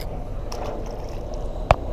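A fish splashes in the water nearby.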